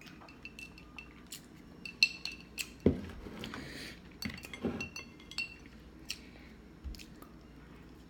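A fork clinks against a plate.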